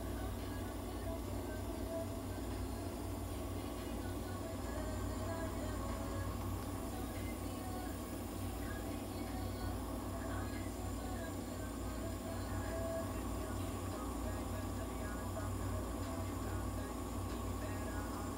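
A nebulizer hisses steadily as mist pours out.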